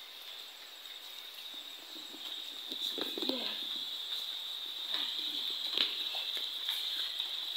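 Tall grass rustles as a boy pushes through it.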